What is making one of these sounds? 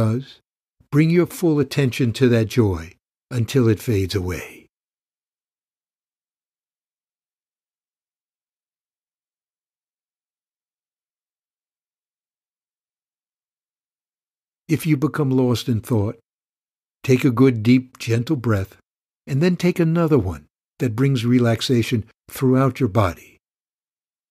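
An older man speaks calmly and warmly, close to a microphone.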